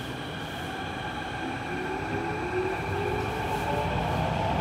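A train motor whines, rising in pitch as the train pulls away.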